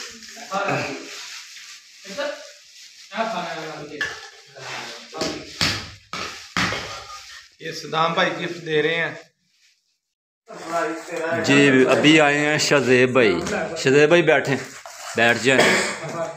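Wrapping paper rustles and crinkles.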